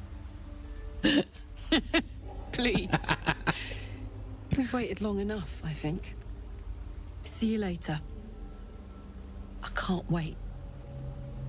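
A woman speaks warmly and playfully, close up.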